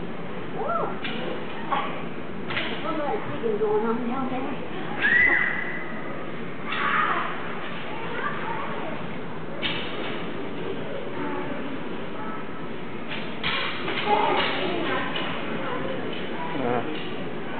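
Hockey sticks clatter and knock against the puck.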